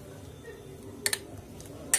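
A spoon clinks against a glass cup.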